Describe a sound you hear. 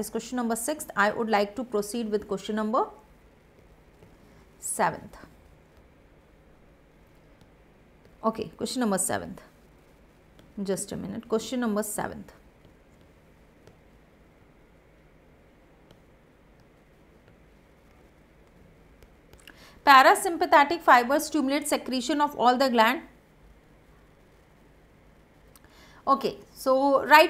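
A young woman speaks calmly and clearly into a close microphone, in bursts with pauses.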